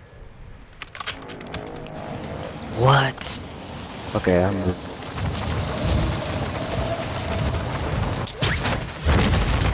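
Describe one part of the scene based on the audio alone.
Wind rushes loudly past during a fast fall through the air.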